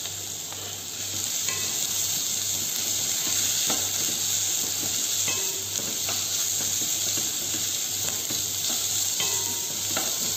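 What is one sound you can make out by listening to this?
Vegetables sizzle in a pot.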